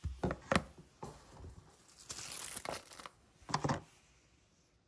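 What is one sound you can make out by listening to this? A plastic lid clicks onto a container.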